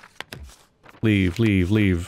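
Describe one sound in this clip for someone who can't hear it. A rubber stamp thumps down on paper.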